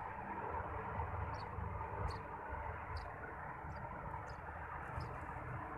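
Wind blows steadily outdoors and rustles leaves close by.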